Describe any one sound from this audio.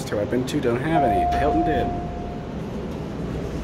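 An elevator chime rings once in a steady tone.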